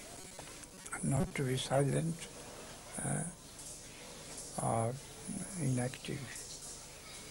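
An elderly man speaks slowly and calmly close by, with long pauses.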